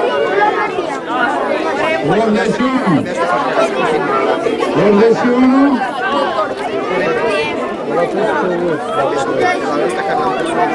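A man speaks into a microphone over a loudspeaker outdoors.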